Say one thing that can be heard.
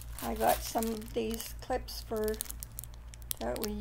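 A plastic bag crinkles in a hand.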